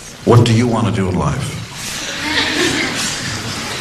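A man speaks into a microphone, asking a question.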